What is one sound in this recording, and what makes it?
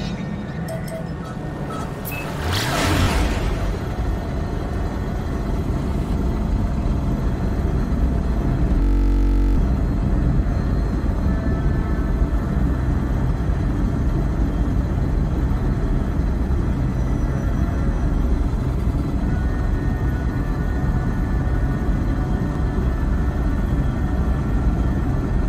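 A spaceship engine roars with a deep, steady rumble.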